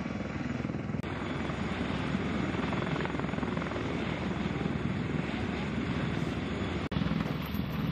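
A helicopter's rotor roars and thumps.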